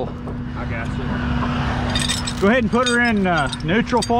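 A steel chain clinks as it is handled.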